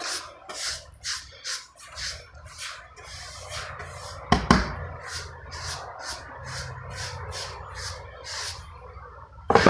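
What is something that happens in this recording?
A brush sweeps briskly back and forth in quick, rhythmic strokes.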